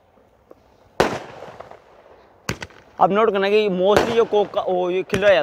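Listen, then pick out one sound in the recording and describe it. Fireworks bang loudly, several times.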